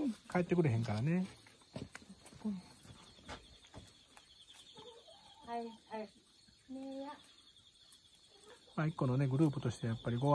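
Hens cluck and call nearby.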